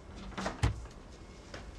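A door clicks shut.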